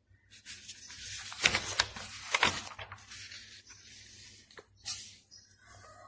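Paper pages rustle as they are turned by hand.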